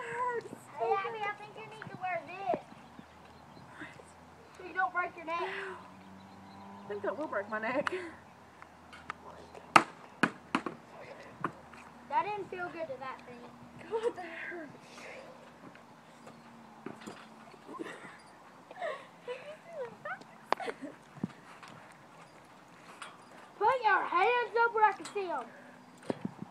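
A young girl talks and laughs close by, outdoors.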